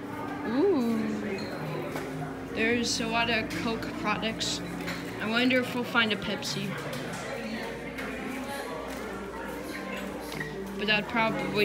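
Men and women chatter quietly in the background.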